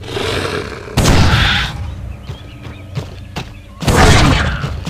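A rifle fires loud, booming shots.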